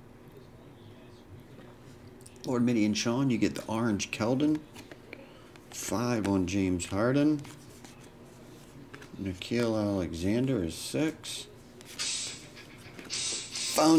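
Trading cards rustle and slide against each other in someone's hands.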